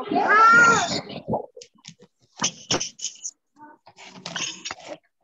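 A young boy speaks clearly over an online call.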